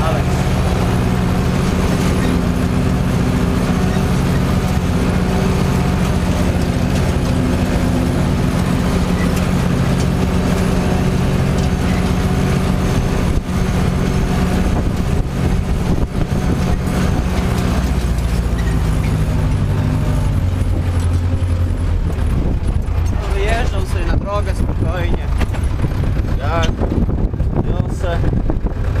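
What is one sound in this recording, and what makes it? A tractor rattles and clanks as it drives over rough ground.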